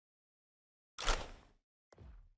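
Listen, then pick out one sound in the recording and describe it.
A gun fires a single sharp shot.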